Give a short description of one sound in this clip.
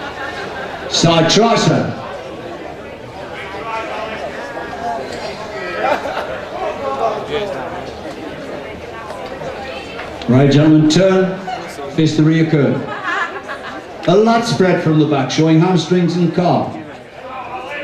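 Men in an audience shout and cheer loudly in bursts.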